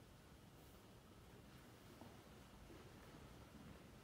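A metal cup is set down on a table with a soft clink.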